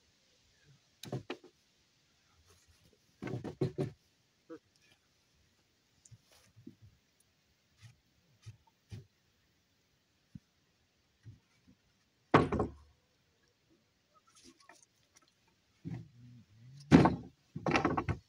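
Wooden boards knock and scrape against each other.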